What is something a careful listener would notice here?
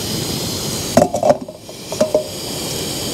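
A metal pot clanks onto a stove.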